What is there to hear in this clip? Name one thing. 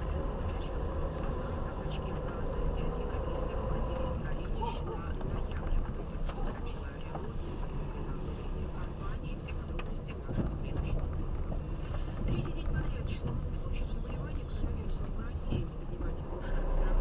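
A car engine hums steadily from inside as the car drives slowly.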